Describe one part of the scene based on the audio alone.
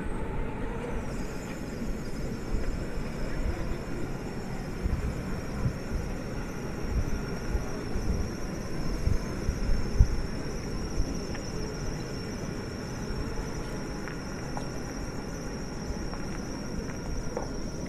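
A jeep engine rumbles as the jeep drives slowly past.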